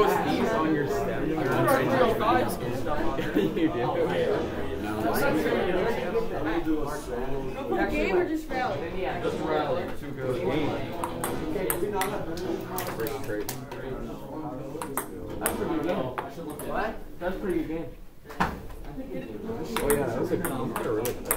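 Teenage boys talk and laugh loudly nearby.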